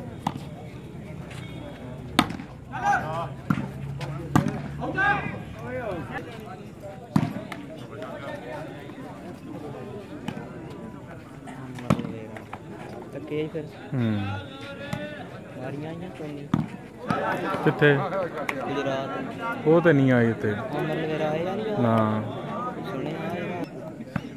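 Men shout and call out outdoors during a ball game.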